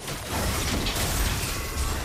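Fiery explosions boom.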